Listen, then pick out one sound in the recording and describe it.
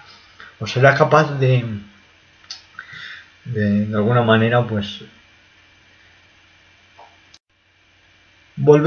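A young man speaks casually and close to a microphone.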